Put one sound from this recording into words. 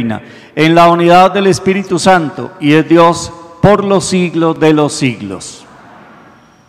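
A man speaks calmly into a microphone in an echoing room.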